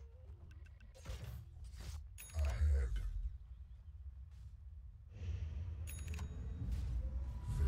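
Game characters clash with hits and impacts.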